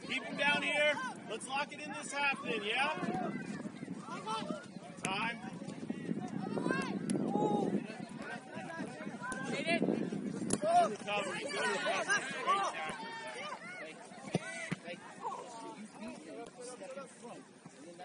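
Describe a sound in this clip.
Spectators nearby talk and cheer outdoors.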